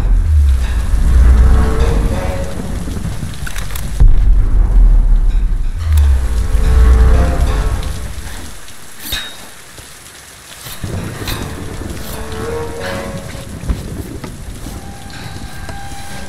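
Fires crackle and roar nearby.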